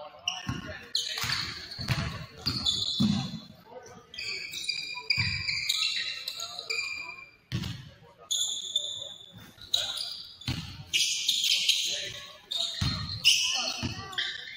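A basketball bounces on a hard floor with dull thuds.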